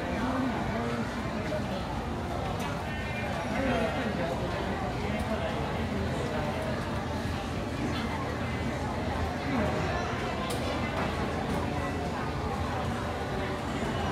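Several adults talk over each other close by.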